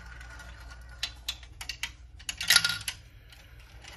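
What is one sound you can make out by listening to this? Marbles clatter and roll down a plastic track.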